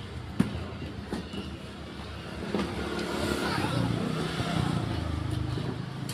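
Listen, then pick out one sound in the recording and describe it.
A cardboard box thumps and rustles as a child climbs into it.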